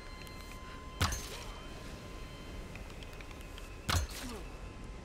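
A game bow fires arrows with sharp twangs.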